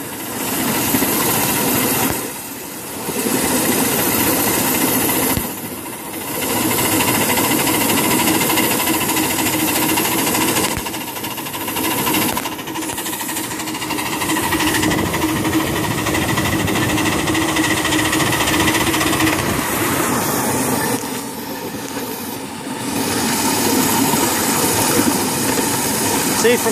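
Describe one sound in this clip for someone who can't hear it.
A miniature steam locomotive chugs and hisses along the track.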